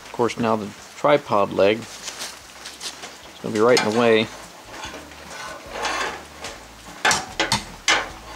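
A metal tool clinks and scrapes against a steel frame.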